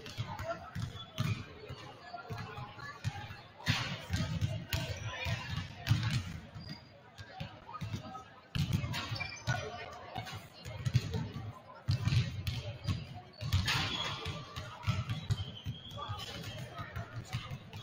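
Basketballs bounce and thud on a wooden floor in a large echoing gym.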